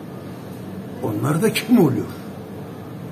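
An older man speaks with emphasis close by.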